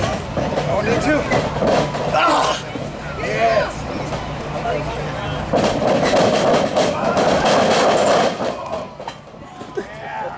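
Wrestlers thud and slap against each other in a ring.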